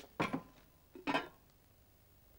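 A lid clinks onto a pot.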